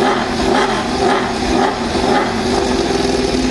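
A racing motorcycle engine revs in sharp bursts.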